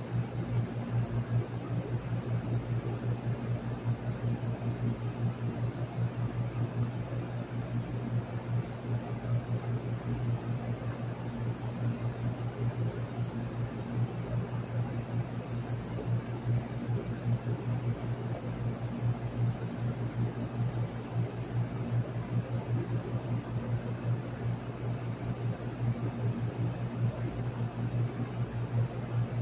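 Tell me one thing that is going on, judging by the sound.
A large outdoor fan hums steadily with a low, pulsing drone.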